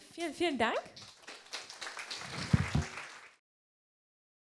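An audience applauds.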